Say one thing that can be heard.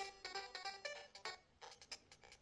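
A handheld game console plays short electronic bleeps.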